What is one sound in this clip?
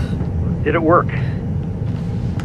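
A woman speaks anxiously into a phone, close by.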